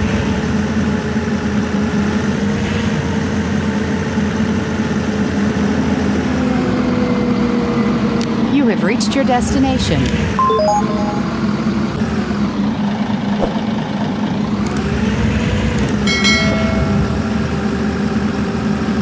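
A bus engine hums steadily as the bus drives slowly.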